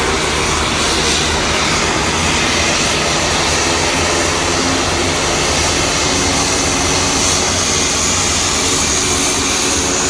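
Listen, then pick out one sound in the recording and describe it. A propeller plane's engines roar loudly.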